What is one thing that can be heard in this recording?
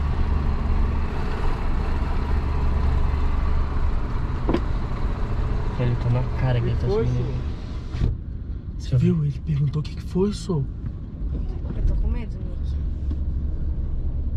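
A car engine hums low and steady inside a car.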